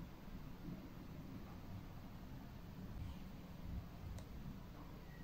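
Metal tweezers tick faintly as they pick at skin.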